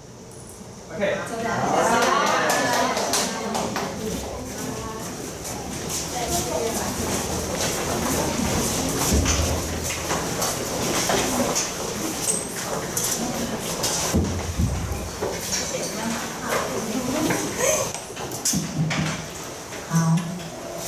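Many people chatter and move about at once.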